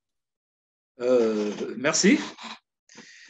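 A middle-aged man speaks steadily over an online call.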